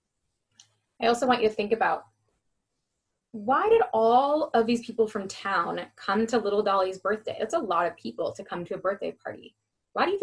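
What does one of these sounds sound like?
A young woman reads aloud with animation, close to the microphone.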